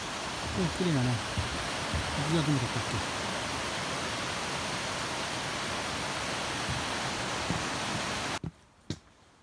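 Water rushes steadily down a waterfall.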